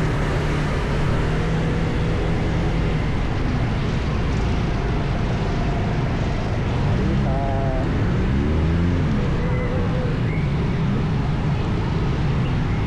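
Wind rushes past in a low rumble.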